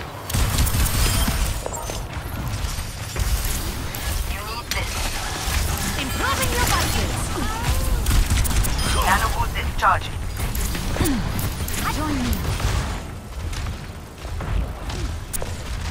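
A futuristic energy gun fires with humming, crackling bursts.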